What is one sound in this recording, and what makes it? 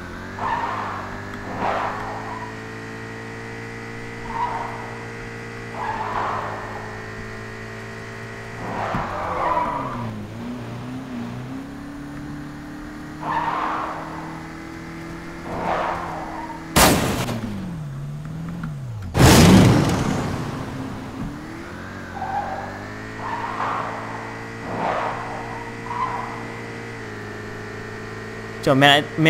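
A car engine hums steadily, shifting pitch as the car speeds up and slows.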